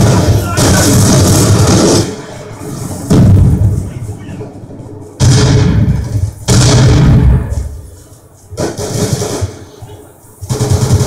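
Loud gunfire and blasts from a video game roar through a television speaker in bursts.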